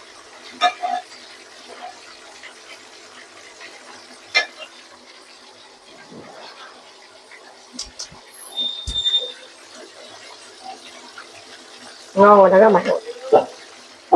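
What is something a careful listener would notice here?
A spoon clinks and scrapes against a metal pot.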